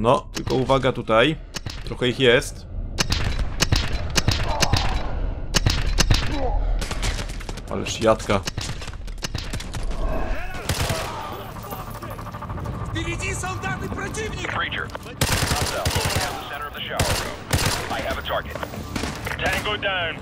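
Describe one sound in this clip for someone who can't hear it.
A rifle fires rapid bursts of gunshots in an echoing space.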